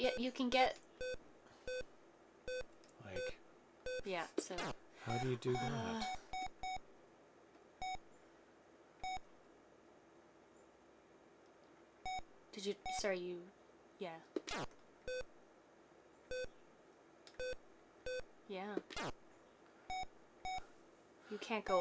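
Short electronic beeps sound at a steady, regular pace.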